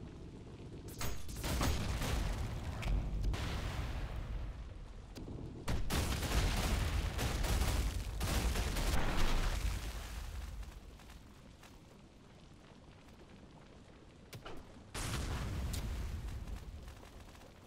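A heavy gun fires in loud bursts.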